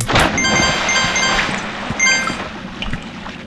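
Bright, chiming game sound effects ring out quickly, one after another.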